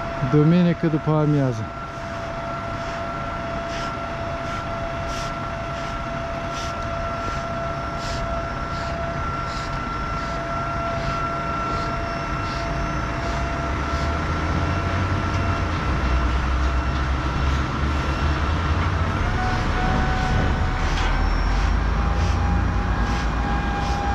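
Water sprays hard onto the pavement with a steady hiss.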